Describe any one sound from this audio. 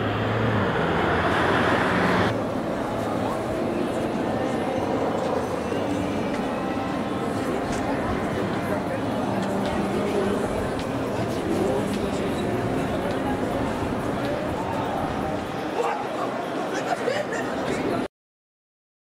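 City traffic rumbles outdoors.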